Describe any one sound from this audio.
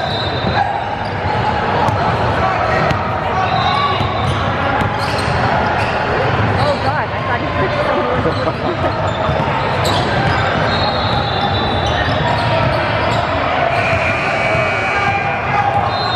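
A crowd of players and onlookers chatters in the background.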